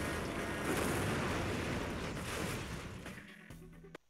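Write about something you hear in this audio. A truck crashes and tips over with a loud crunch.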